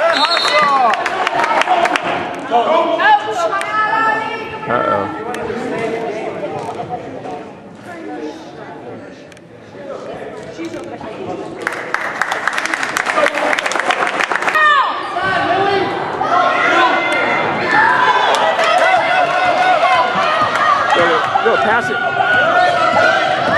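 A crowd of spectators cheers and shouts in an echoing gym.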